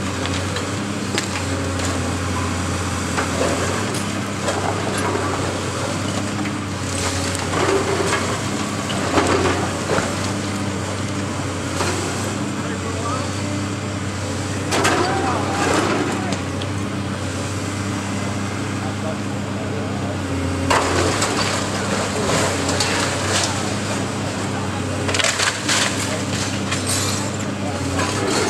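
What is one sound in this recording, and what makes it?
A large excavator engine rumbles steadily nearby.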